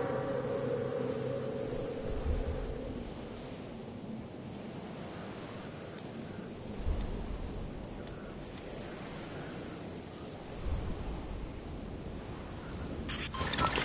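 Wind rushes past a video game character gliding through the air.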